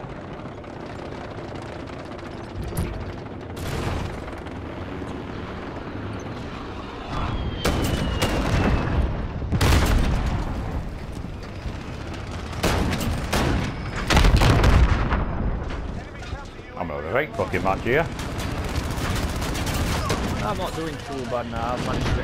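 A tank's engine rumbles as it drives.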